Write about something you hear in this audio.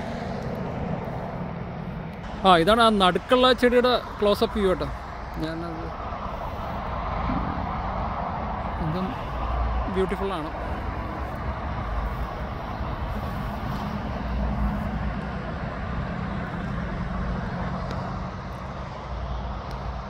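Wind blows outdoors and rustles tall grass.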